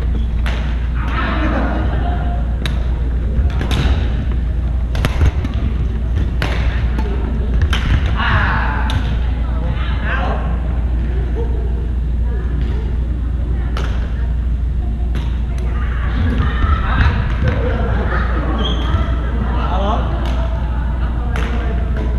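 Men call out and talk to each other during play.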